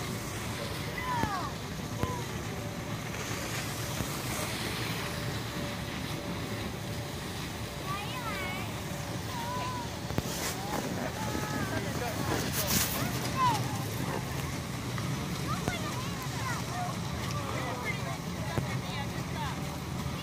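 Young children call out in high voices outdoors.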